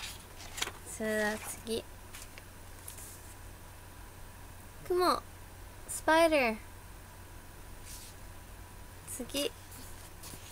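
A young woman speaks in short, lively bursts close to a microphone.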